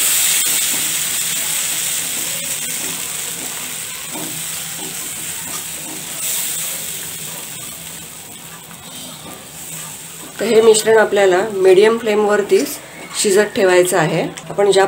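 A whisk beats a thick batter against a metal pan, scraping and tapping.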